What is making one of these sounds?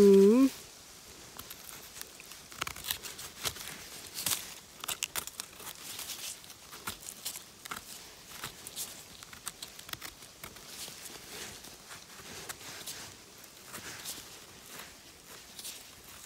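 A small knife scrapes dirt off a mushroom stem with short rasping strokes.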